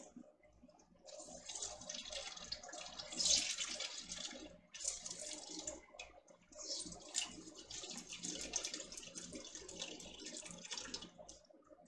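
Liquid trickles and drips into a pot.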